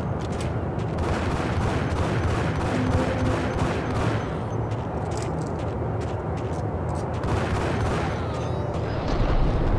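Pistols fire in rapid bursts that echo through a large hall.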